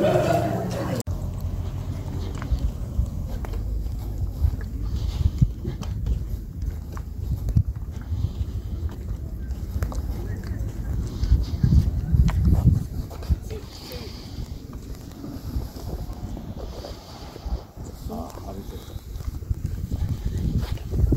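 Wind blows and buffets the microphone outdoors.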